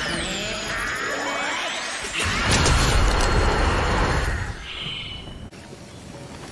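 Game sound effects whoosh and chime.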